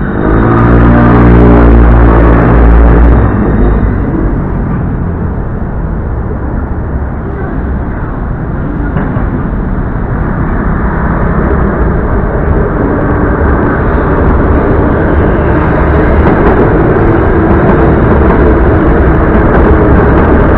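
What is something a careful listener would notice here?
A train rumbles steadily past at a distance.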